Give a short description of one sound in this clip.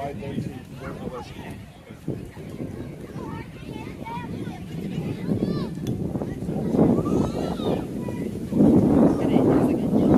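Adults and children shout and cheer nearby outdoors, growing louder.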